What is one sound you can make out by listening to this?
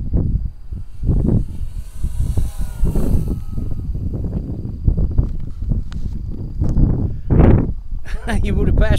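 A small propeller engine drones overhead, rising and then fading as it passes.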